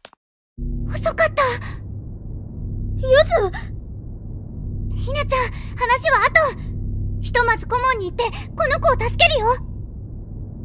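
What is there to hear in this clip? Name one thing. A young girl speaks with animation, close by.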